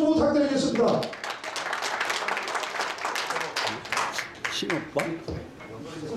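A crowd claps and applauds in a large room.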